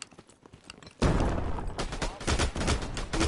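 Gunshots crack in quick bursts close by.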